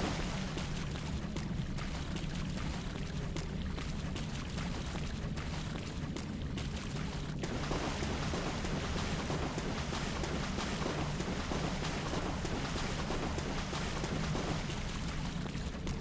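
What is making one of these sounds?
Footsteps run over stony ground.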